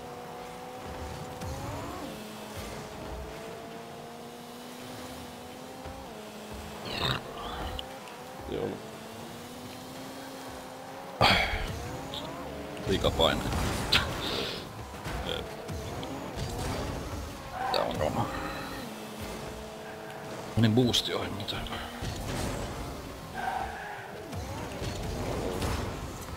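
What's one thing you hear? A video game car engine hums, rising and falling in pitch.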